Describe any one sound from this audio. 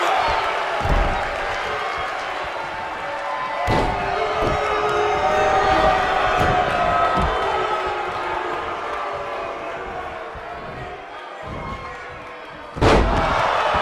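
Heavy bodies slam onto a ring mat with loud thuds.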